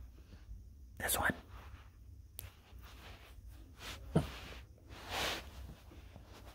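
Hands rub together close by, making soft rustling and crinkling.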